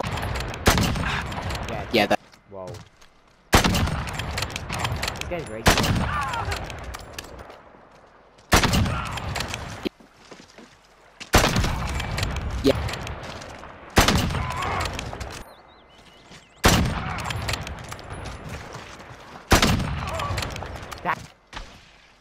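A rifle fires single loud shots that echo and fade.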